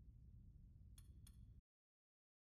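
Two soft electronic blips sound as a game menu selection changes.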